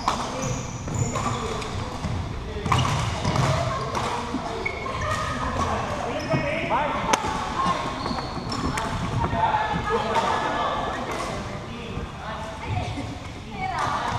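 Many young people call out and chatter, echoing in a large hall.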